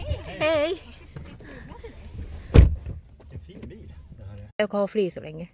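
A woman talks nearby inside a car.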